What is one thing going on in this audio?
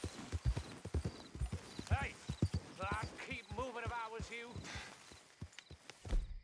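A horse gallops with quick, heavy hoofbeats.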